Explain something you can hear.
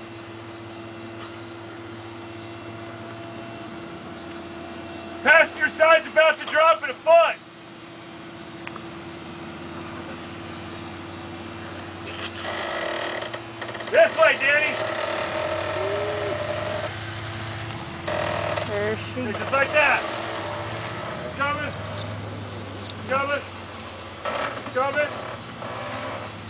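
A truck engine rumbles and revs as the truck crawls slowly over rock.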